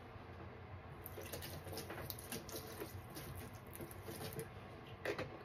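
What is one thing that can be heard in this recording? Liquid soap pours and splashes onto sponges in a plastic tub.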